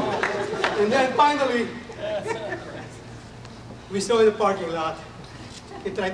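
A man speaks loudly and calmly to a group.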